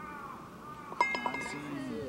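A golf putter taps a ball.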